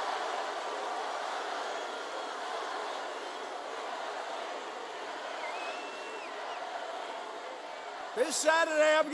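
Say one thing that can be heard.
A crowd cheers and chants loudly in a large hall.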